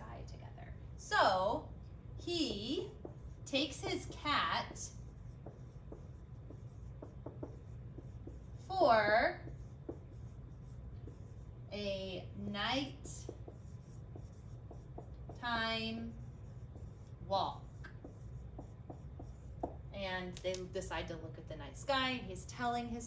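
A woman speaks calmly and clearly, close by, in short phrases.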